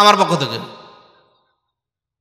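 A man speaks into a microphone with animation, his voice ringing through loudspeakers.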